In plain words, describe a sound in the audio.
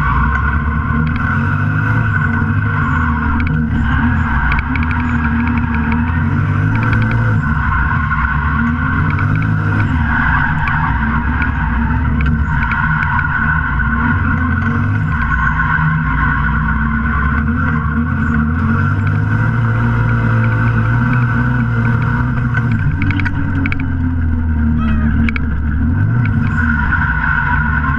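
A car engine roars loudly inside the cabin, revving up and down.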